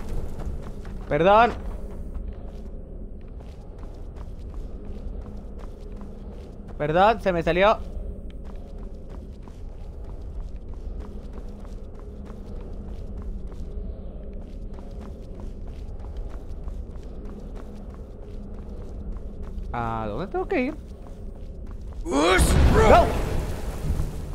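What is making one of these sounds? A young man speaks in short, excited bursts close to a microphone.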